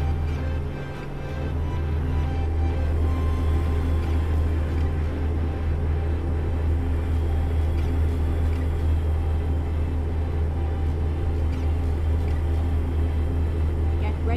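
A truck engine hums with a steady low drone.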